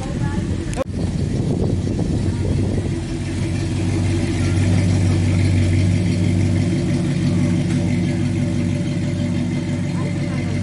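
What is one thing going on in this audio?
An old pickup truck's engine rumbles as it drives slowly past.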